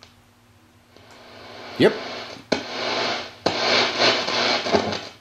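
A radio receiver hisses with static through its loudspeaker.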